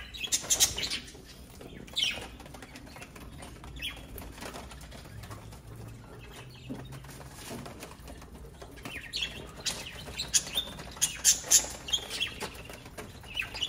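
Budgerigars rustle paper as they peck at greens.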